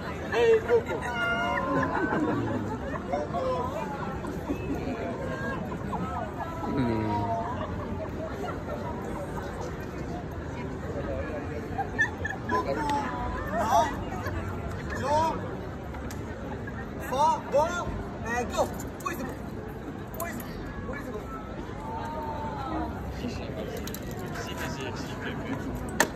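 A crowd of people chats nearby outdoors.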